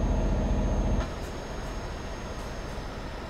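Traffic drones past on a road.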